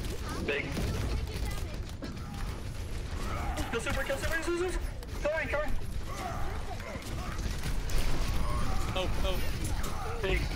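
Game gunfire and explosions boom in rapid bursts.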